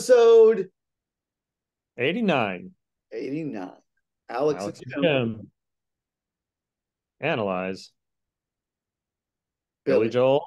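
A second middle-aged man speaks in reply over an online call.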